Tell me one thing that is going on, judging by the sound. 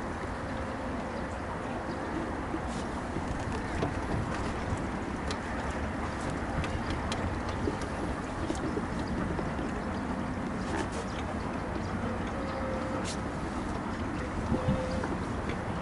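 Wind buffets a microphone outdoors with a steady rumble.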